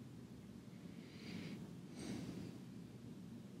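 A man breathes out close by.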